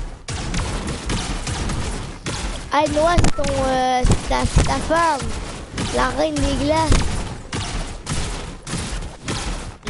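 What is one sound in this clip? Guns fire in quick shots.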